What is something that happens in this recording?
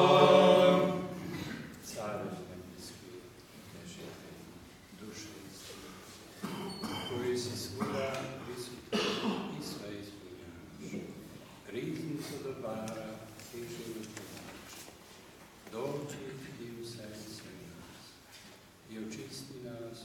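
An elderly man chants prayers in an echoing room.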